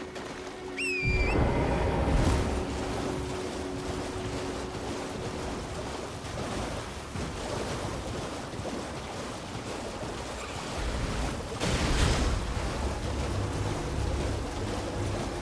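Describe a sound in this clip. Footsteps splash and slosh through shallow water.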